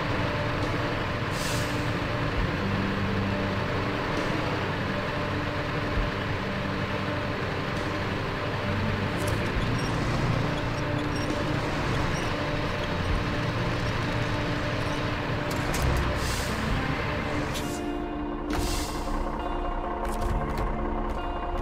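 A heavy truck engine rumbles and strains at low speed.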